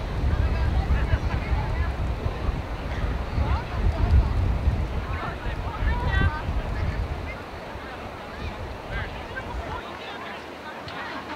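Young women call out to each other across an open field, heard from a distance.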